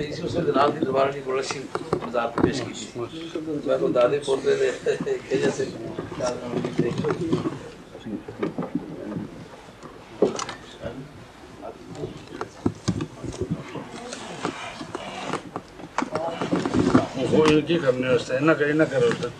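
Several men talk at once close by.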